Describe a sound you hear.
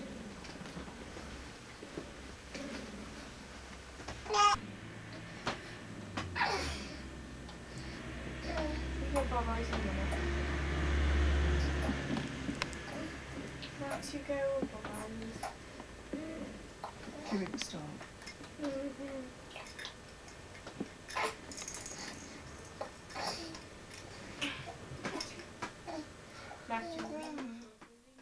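A woman talks softly and calmly close by.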